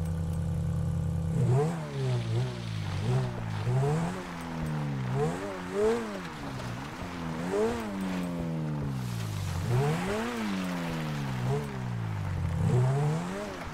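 A sports car engine revs up and down repeatedly.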